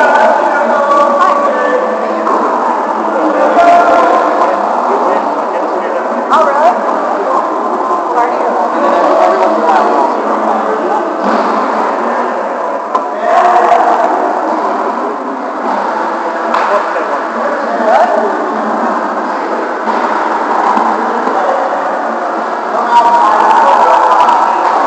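A volleyball is struck with a thud.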